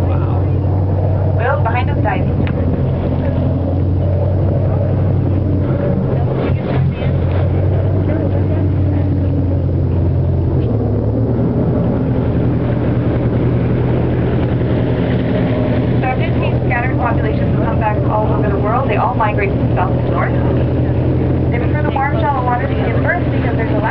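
Choppy waves slosh and splash against a boat.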